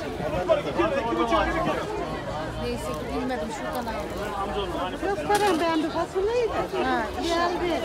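A man and a woman talk calmly nearby.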